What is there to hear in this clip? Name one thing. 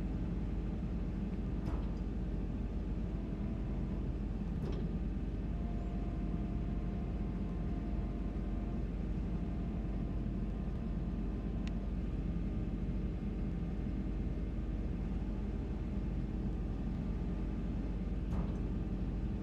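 A diesel excavator engine rumbles steadily.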